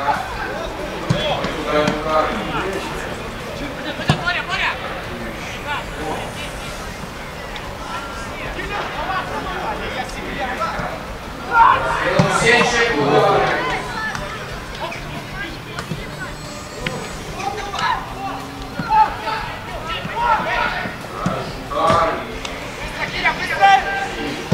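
A football is kicked with dull thuds outdoors.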